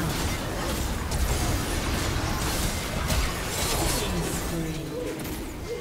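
Game spells crackle and whoosh in quick bursts.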